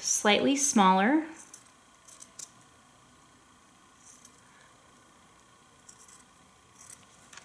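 Scissors snip through felt.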